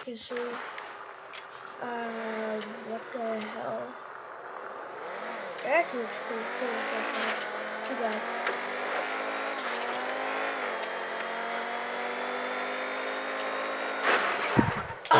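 A sports car engine roars at high speed, shifting up through the gears.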